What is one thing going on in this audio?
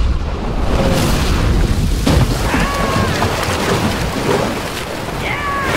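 Water splashes and churns heavily.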